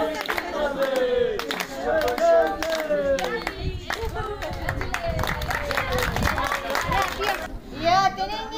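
A man sings loudly nearby.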